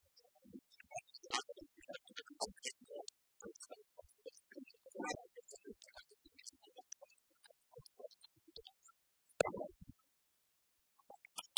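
Keys clatter on laptop keyboards.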